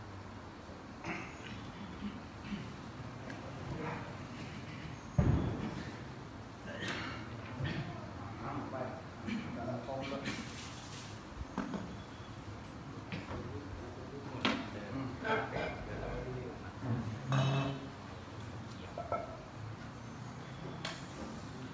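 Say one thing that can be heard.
Men murmur and talk quietly nearby.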